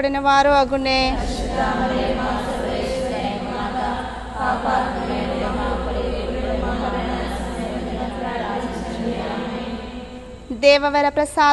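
A crowd of women murmur prayers together.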